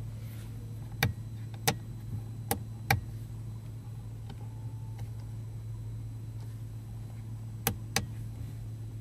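A switch clicks sharply several times.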